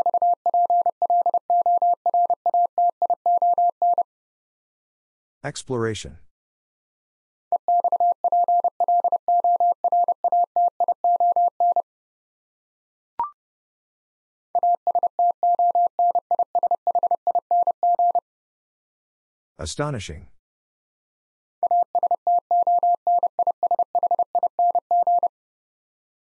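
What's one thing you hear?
A Morse code key beeps out rapid bursts of a steady high tone.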